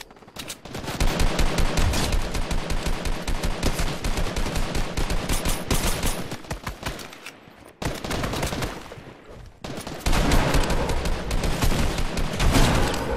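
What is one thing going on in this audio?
Rapid gunfire from a rifle rattles in quick bursts.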